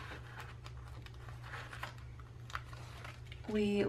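Paper rustles softly as a sticker is peeled from its sheet.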